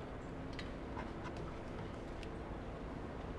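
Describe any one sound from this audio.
Objects clatter and shuffle in a drawer.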